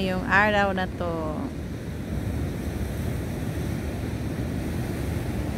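Waves wash and crash against rocks close by.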